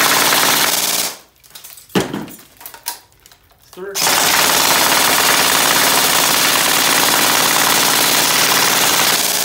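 An airsoft electric rifle fires on full auto in a fast, buzzing stream.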